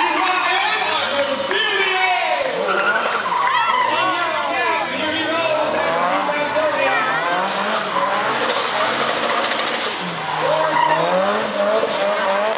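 Tyres squeal loudly on asphalt.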